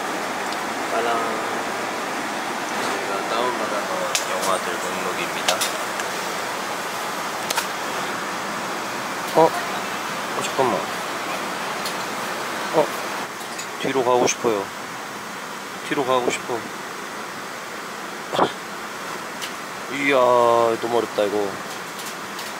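A young man speaks quietly and casually close by.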